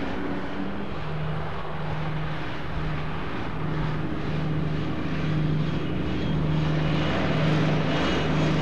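A diesel locomotive drones steadily as it approaches, growing louder.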